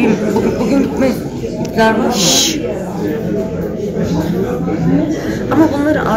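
People chatter in the background of a large echoing hall.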